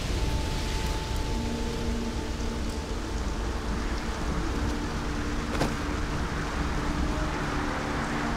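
A vehicle engine hums and rumbles steadily while driving over rough ground.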